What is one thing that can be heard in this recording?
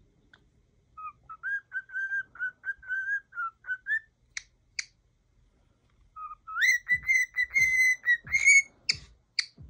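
A bird whistles a repeated tune close by.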